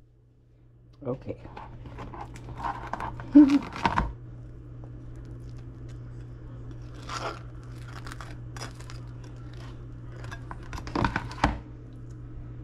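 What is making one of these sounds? A knife scrapes spread across crisp toast.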